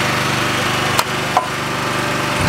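Metal clanks sharply a couple of times.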